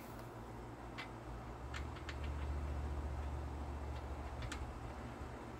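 A small metal valve clicks as a hand turns it.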